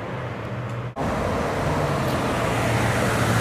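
A sports car approaches with its engine rumbling.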